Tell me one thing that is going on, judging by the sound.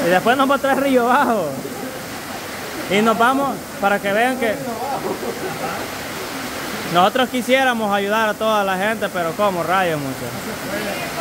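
A man talks loudly with animation close by.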